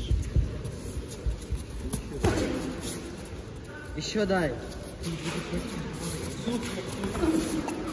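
Boxing gloves thud against a fighter's head guard.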